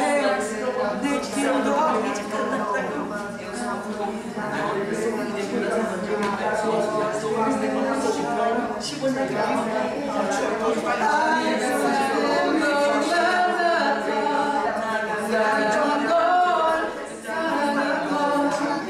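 A young man sings into a microphone, heard through loudspeakers.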